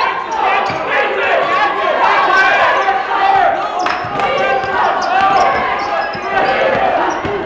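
A crowd chatters and calls out in an echoing gym.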